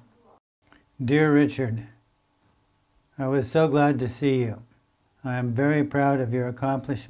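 An elderly man reads out slowly and calmly, close to the microphone.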